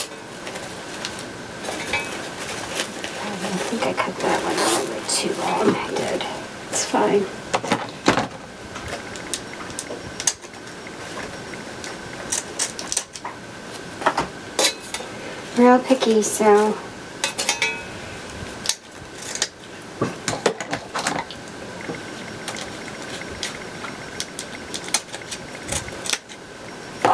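Plastic ribbon rustles and crinkles as it is handled.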